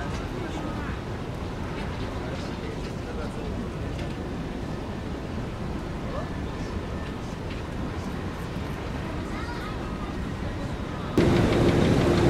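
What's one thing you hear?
Construction machines rumble and clank.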